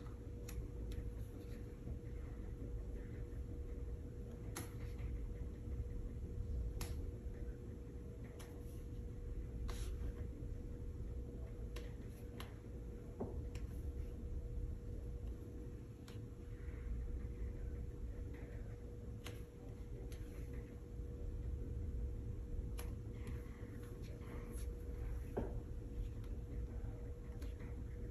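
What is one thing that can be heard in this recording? A brush dabs and scrapes softly on paper, close by.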